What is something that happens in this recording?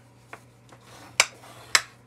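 A card crease is rubbed flat with a scraping sound.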